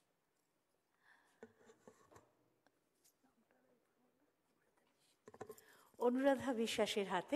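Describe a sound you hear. A woman speaks into a microphone in a hall, calmly and then with animation.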